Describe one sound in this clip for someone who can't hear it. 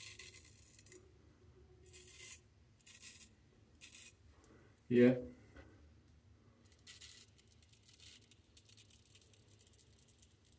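A razor blade scrapes through stubble in short strokes.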